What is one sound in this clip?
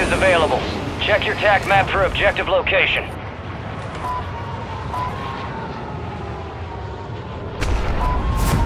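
Large aircraft engines drone steadily.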